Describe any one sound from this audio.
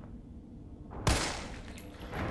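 A gunshot cracks loudly indoors.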